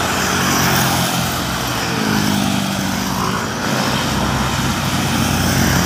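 A motorcycle engine hums as it rides past.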